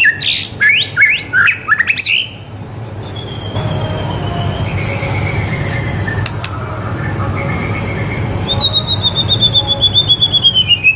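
A white-rumped shama sings rich whistled phrases and rapid trills.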